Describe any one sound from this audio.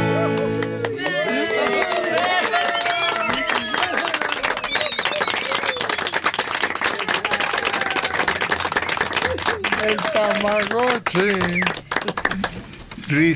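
A group of people applaud and cheer.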